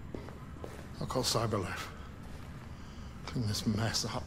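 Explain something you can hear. An older man speaks gruffly close by.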